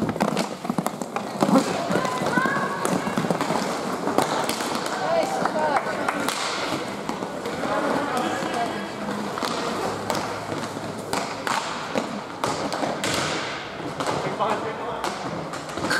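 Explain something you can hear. Hockey sticks clack against a ball and against each other.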